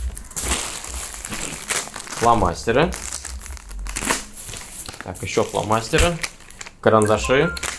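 Plastic packaging crinkles.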